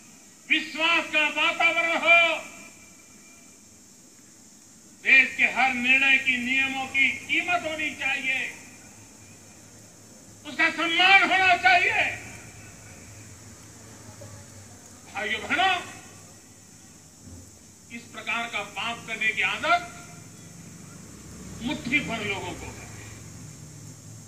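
An elderly man speaks forcefully into a microphone, in short bursts with pauses.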